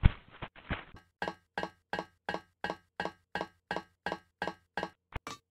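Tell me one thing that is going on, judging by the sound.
Footsteps clang rhythmically up a metal ladder.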